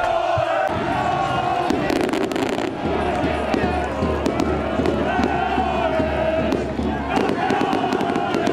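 A group of young men chant and cheer outdoors.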